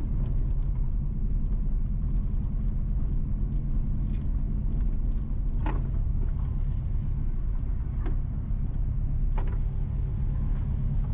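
Tyres roll over a rough, bumpy road with occasional knocks.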